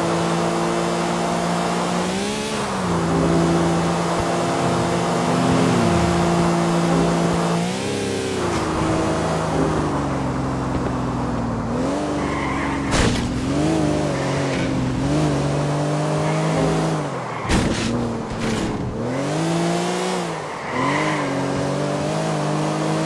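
A sports car engine roars at high revs, rising and dropping in pitch as it shifts gears.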